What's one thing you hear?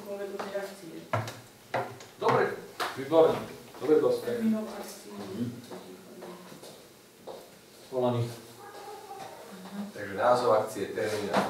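A man speaks calmly in a room with a slight echo.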